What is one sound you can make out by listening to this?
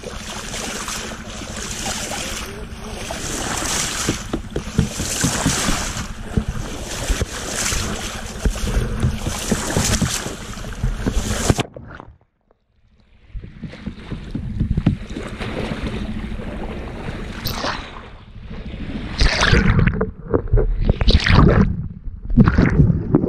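Water laps and splashes close by at the sea's surface.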